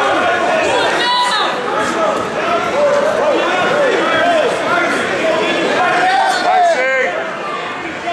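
Shoes squeak sharply on a mat.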